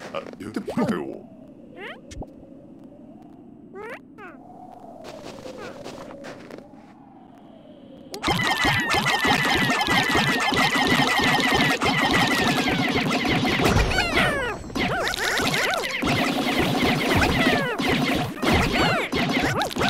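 Soft, gentle game music plays.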